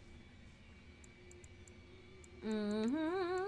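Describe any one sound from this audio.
Soft menu clicks tick as a selection moves down a list.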